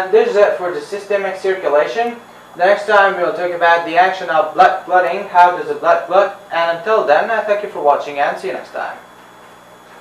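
A young man speaks calmly and clearly, close to a microphone.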